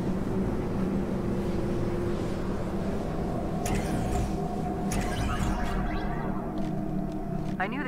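A teleporter whooshes with a deep, steady hum.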